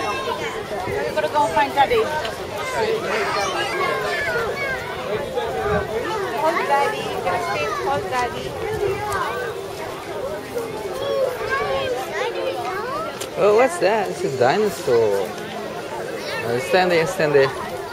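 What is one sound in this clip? Many people chatter nearby outdoors.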